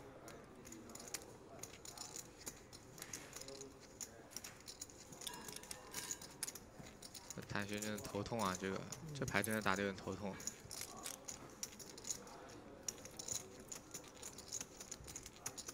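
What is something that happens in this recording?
Poker chips click softly against each other.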